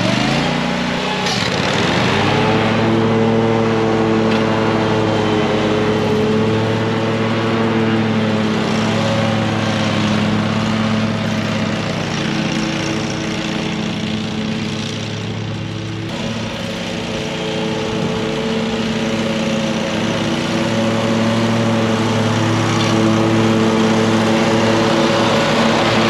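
A lawn mower engine drones steadily, growing quieter as it moves away and louder as it returns.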